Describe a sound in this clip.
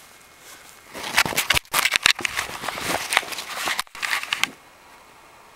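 Fabric rustles and scrapes right against the microphone.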